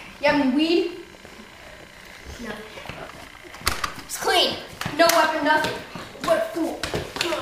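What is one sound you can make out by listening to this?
A young boy shouts excitedly close by.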